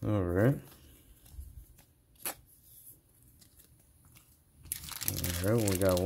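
Playing cards slide and tap together.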